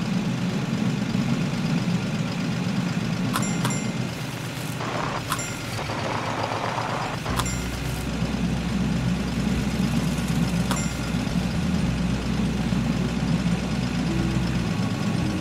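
A cartoon garbage truck engine hums steadily as it drives.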